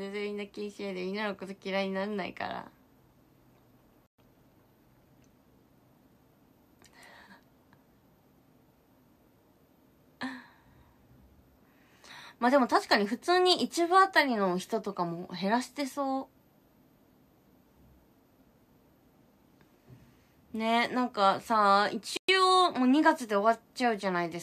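A young woman talks animatedly and close up, in short bursts with pauses.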